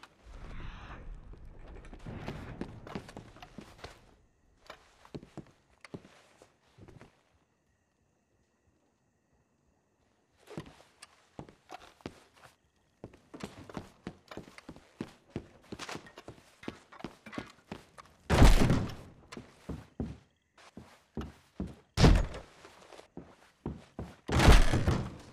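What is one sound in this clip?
Footsteps thud on a wooden floor indoors.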